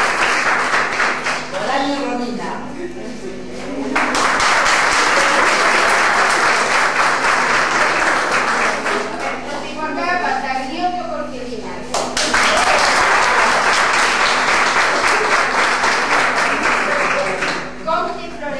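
A crowd of young women claps steadily in applause.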